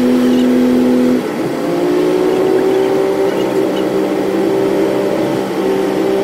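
A vehicle engine drones steadily from inside the cab, its pitch dropping briefly and then rising again.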